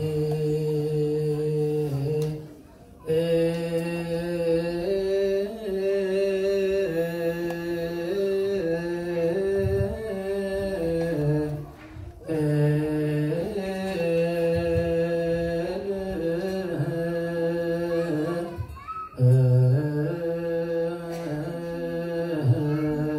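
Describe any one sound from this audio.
A group of men chant together in long, steady tones, pausing briefly for breath.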